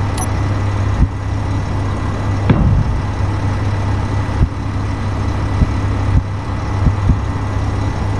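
Heavy blocks thud into place now and then.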